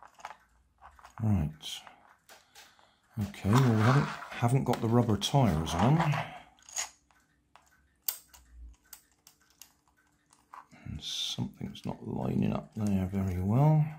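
Small plastic gears whir and rattle as they turn.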